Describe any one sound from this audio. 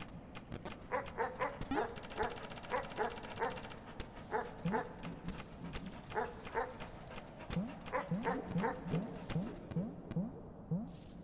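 Small soft footsteps patter quickly across the ground.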